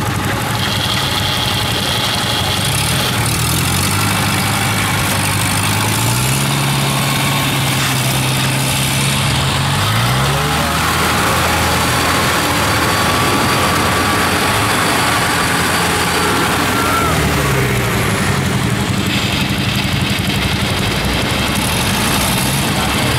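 A harvester engine runs loudly nearby, its pitch rising and falling.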